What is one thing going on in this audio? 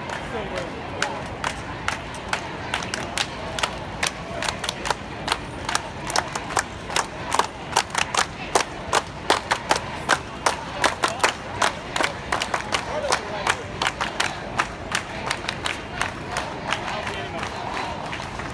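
A crowd of marchers claps in rhythm outdoors.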